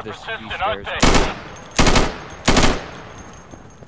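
Three loud gunshots ring out in quick succession.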